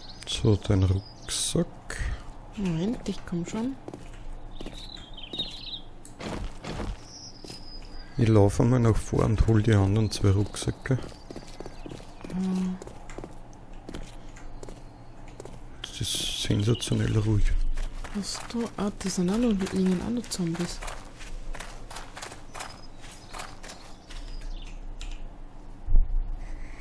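Footsteps crunch along a rough paved road and a gravel path.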